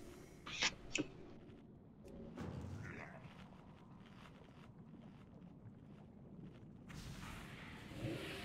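Magic spells crackle and whoosh in a video game.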